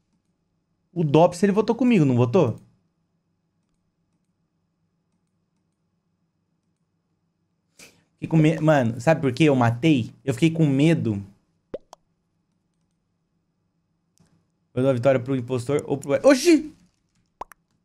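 A young man talks with animation into a headset microphone, in short bursts.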